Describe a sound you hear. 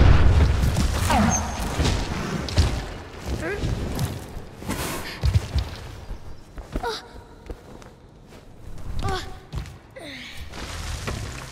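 A large creature lets out short, warbling cries.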